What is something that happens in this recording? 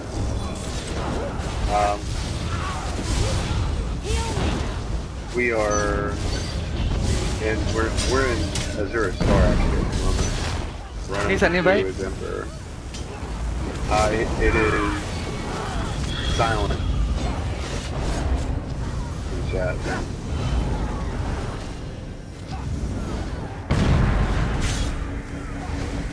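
Magic blasts burst and whoosh.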